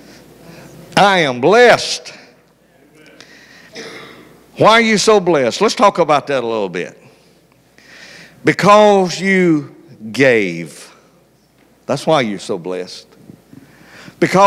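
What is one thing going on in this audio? A man preaches with animation into a microphone, heard through loudspeakers in an echoing hall.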